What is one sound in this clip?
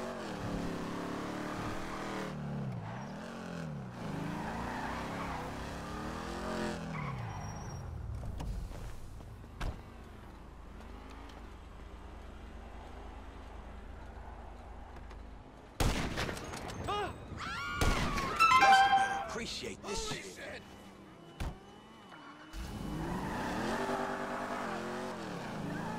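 A muscle car's engine revs as it accelerates.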